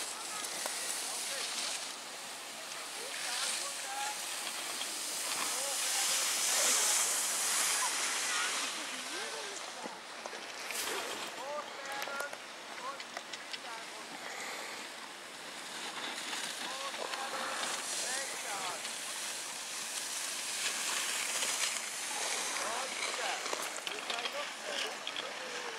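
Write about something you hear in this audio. Skis scrape and hiss over packed snow.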